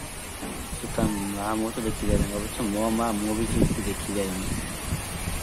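A young man sings a short melodic line.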